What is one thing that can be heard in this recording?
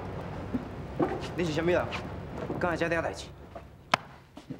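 A man speaks with surprise nearby.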